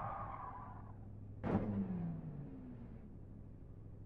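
A racing car engine whines high and then winds down.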